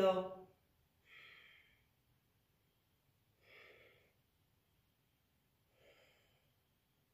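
A woman breathes out audibly while stretching.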